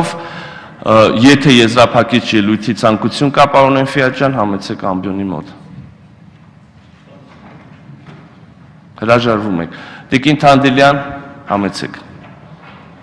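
A man speaks firmly into a microphone in a large echoing hall.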